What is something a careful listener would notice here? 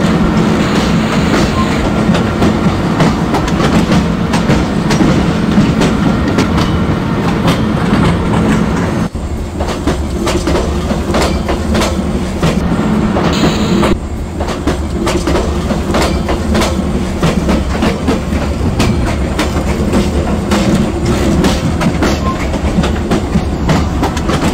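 An electric locomotive hums steadily as it runs.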